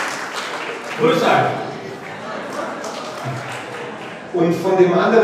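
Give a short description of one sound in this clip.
A man speaks loudly through a microphone in an echoing room.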